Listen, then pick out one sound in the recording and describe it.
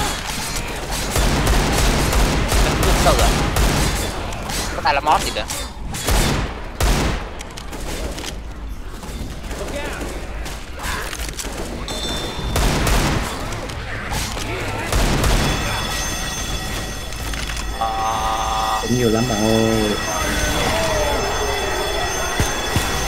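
Gunshots fire in loud, sharp bursts.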